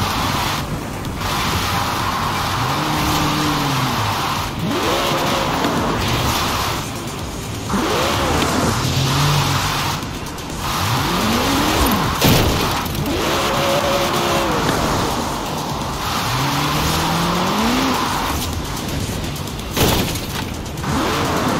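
A sports car engine revs up and down repeatedly.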